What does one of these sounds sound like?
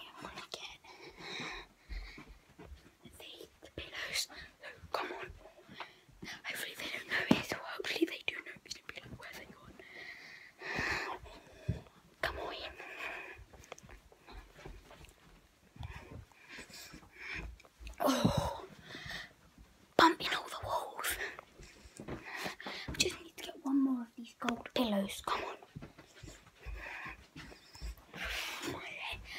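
A young boy talks with animation, close to the microphone.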